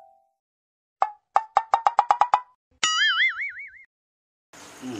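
Electronic beeps sound quickly in a row from a phone.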